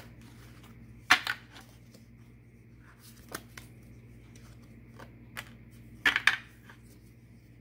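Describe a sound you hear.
Cards tap and slap down onto a wooden board.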